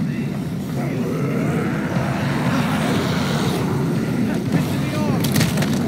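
A crowd of zombies groans and moans nearby.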